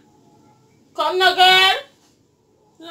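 A young woman speaks up loudly and shrilly nearby.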